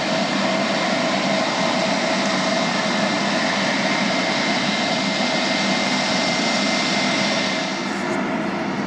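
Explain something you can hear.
A jet airliner's turbofan engines whine as it taxis close by.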